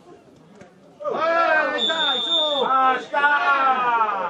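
A man shouts loudly close by.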